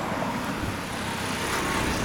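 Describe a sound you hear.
A motor scooter rides past on the street.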